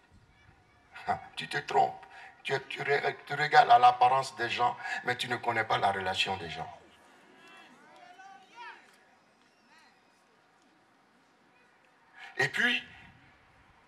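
A man speaks with animation into a microphone through loudspeakers.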